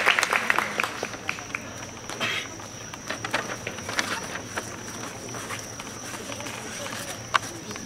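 An audience claps and cheers outdoors.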